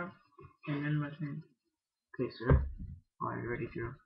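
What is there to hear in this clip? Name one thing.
A playing card is set down softly on a table.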